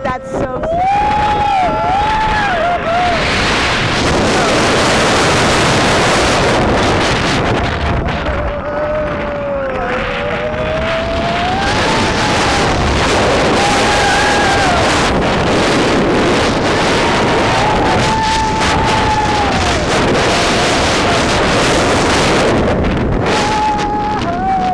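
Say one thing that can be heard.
Roller coaster wheels rumble and clatter along the track.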